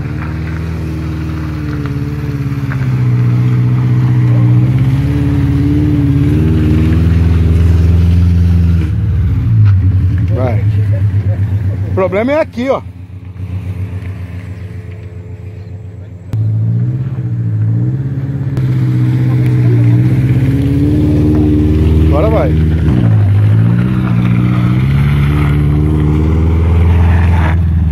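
A car engine revs hard and strains.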